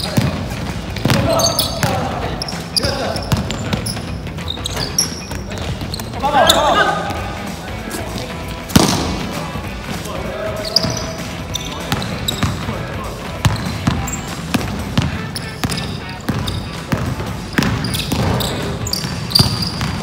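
Sneakers squeak sharply on the court.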